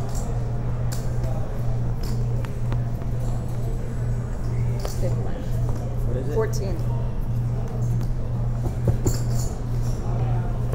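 Men talk quietly nearby.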